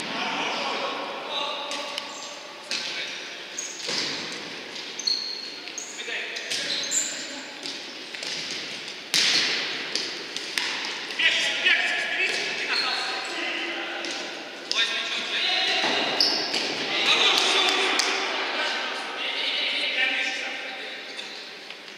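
Young men shout to each other across an echoing hall.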